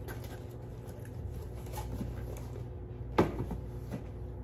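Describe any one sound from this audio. A cardboard box is handled and set down on a counter with a thud.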